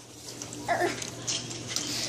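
Cash register keys click.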